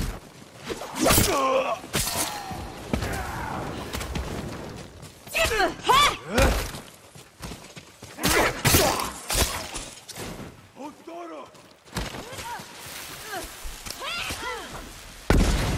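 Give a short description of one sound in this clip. Men shout and grunt as they fight.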